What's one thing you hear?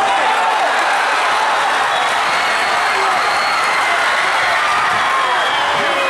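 A large crowd cheers and shouts loudly in an echoing gym.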